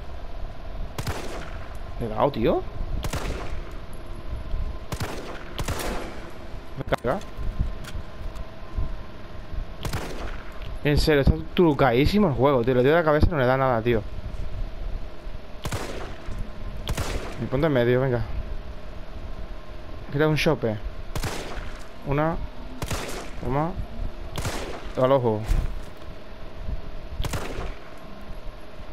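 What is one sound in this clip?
Pistol shots ring out one at a time.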